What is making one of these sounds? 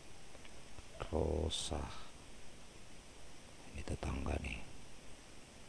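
A man speaks briefly and calmly into a nearby microphone.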